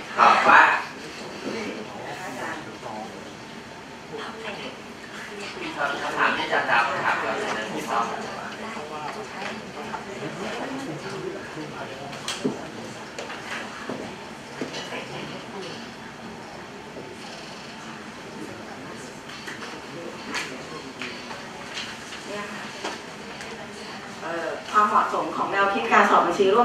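A middle-aged man speaks calmly through a microphone in a room with a slight echo.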